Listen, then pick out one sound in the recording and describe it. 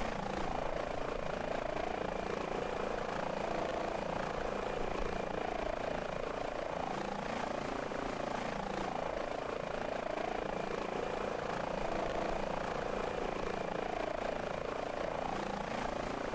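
A helicopter engine whines steadily.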